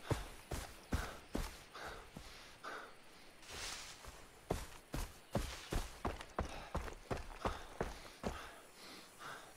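Footsteps thud steadily on grass and dirt.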